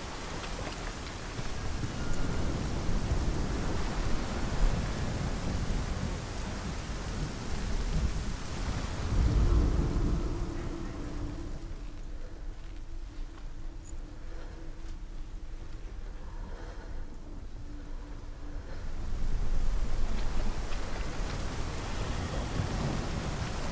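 Footsteps walk slowly over stone.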